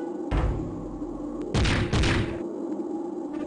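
Sword slashes and heavy hits crash in a fighting game.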